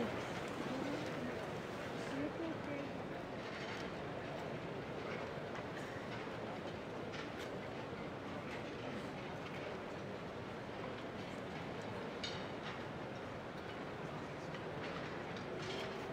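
An orchestra plays steadily in a large echoing hall.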